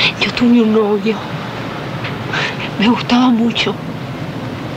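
A woman speaks weakly and close by, with pauses.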